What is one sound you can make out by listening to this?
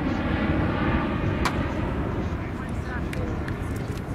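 A plastic bat smacks a ball with a hollow crack.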